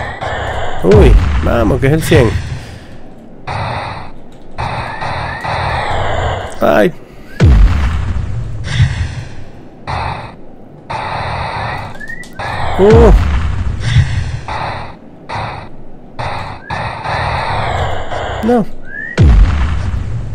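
An explosion booms as a small craft crashes.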